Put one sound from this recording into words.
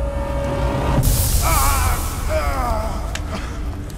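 A torch flame roars.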